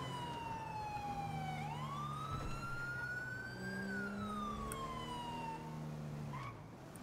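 A police siren wails, rising and falling, then cuts off.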